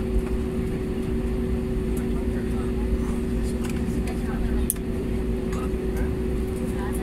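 A jet airliner's engines hum as it taxis, heard from inside the cabin.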